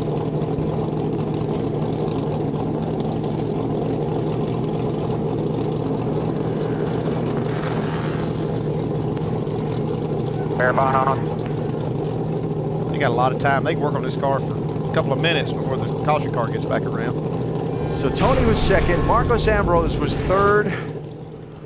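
A race car engine idles with a steady, loud drone.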